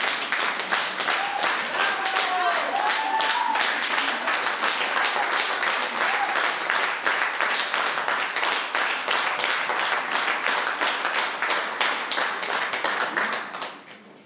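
An audience applauds warmly in a hall and then fades out.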